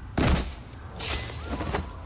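A blade stabs into flesh with a wet thud.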